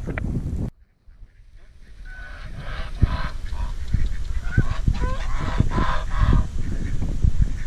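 Geese honk and cackle nearby.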